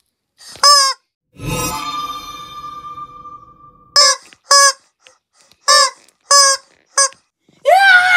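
A rubber chicken squawks in loud, shrill bursts as it is squeezed.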